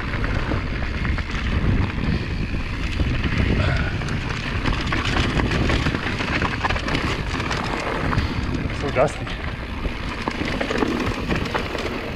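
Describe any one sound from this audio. A bicycle frame and chain clatter over bumps.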